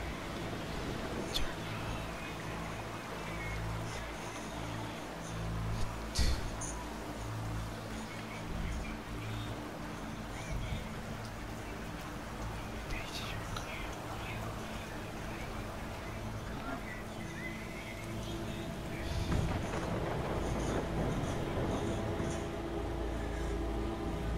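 Water rushes and splashes steadily around a small boat.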